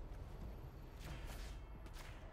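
A magical whoosh sound effect sweeps past.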